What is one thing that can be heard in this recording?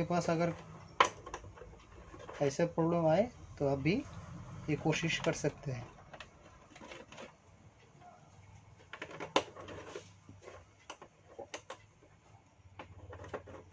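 Small screws click against a plastic cover as they are lifted out.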